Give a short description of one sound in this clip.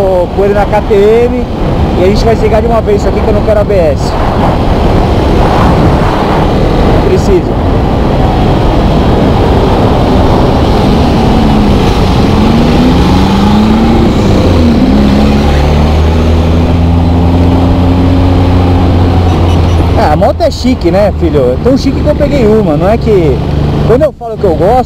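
A motorcycle engine revs up and down up close, shifting gears.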